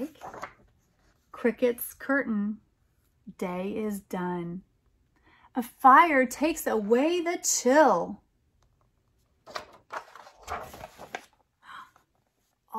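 A woman reads aloud with expression, close by.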